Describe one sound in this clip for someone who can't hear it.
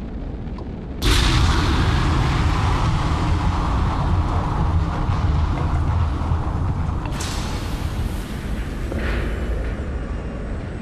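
A spaceship's thrusters roar loudly in a sudden burst and then ease off.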